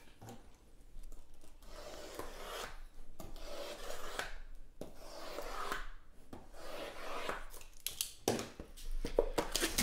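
Cardboard boxes slide and tap against each other on a table.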